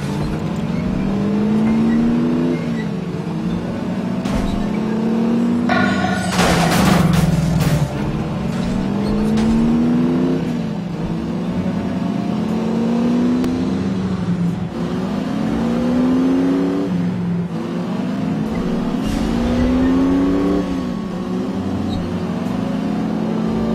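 A car engine revs up and shifts gears again and again.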